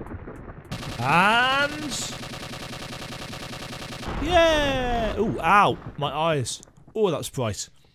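Retro electronic blasts and sweeping zaps ring out.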